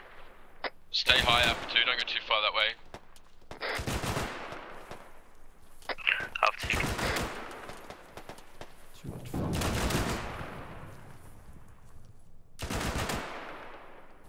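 A rifle fires loud bursts of shots outdoors.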